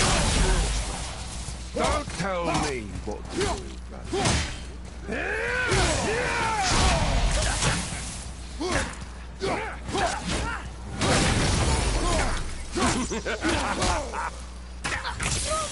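Heavy blows thud and clang in a fight.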